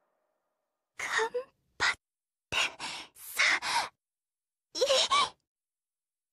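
A young woman speaks softly and quietly.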